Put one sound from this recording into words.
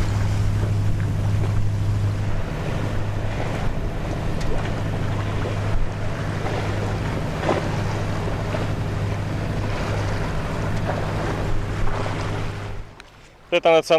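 A boat's engine hums steadily and low.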